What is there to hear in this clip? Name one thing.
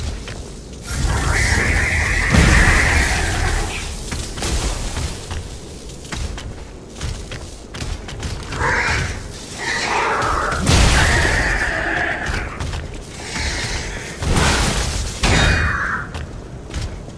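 Electricity crackles and buzzes in loud bursts.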